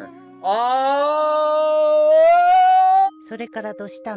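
A young man yells loudly in a long, rising cry.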